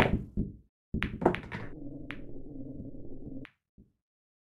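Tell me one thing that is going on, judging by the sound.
Billiard balls click against each other and the cushions.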